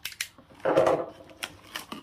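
Tape peels off a cardboard box.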